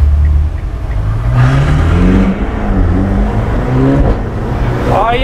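A car engine revs up with a rising roar.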